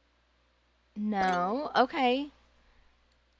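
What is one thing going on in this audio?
A young woman exclaims excitedly into a headset microphone.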